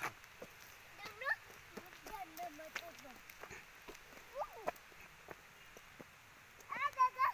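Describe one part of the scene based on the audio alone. Footsteps scuff on a paved road.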